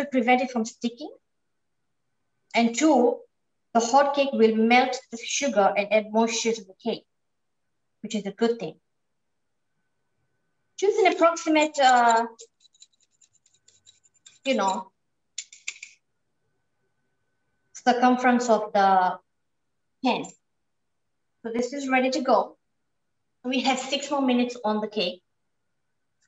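A woman talks calmly, close to a microphone, with pauses.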